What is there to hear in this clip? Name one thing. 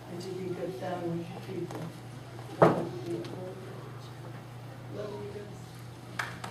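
A woman speaks calmly into a microphone in a room with some echo.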